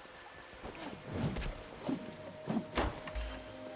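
Swords clash.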